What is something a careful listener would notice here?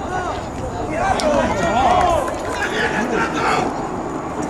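A crowd of spectators cheers loudly.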